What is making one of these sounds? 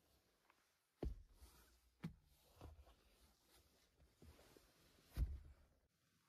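A hand thumps on a padded armrest with dull knocks.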